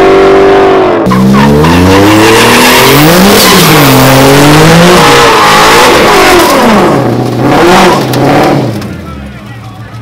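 A car engine revs hard in rising and falling bursts.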